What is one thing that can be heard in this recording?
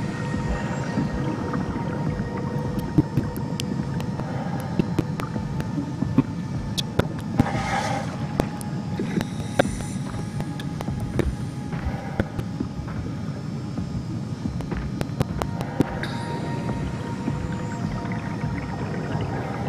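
A deep underwater rumble drones steadily.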